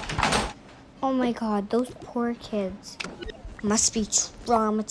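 A quick bouncy electronic jingle plays.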